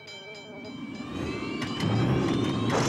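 A propeller plane's engine roars and rises in pitch.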